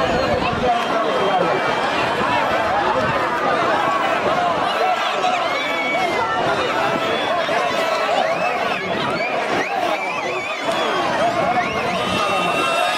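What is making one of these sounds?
A large outdoor crowd of men and boys shouts and cheers loudly.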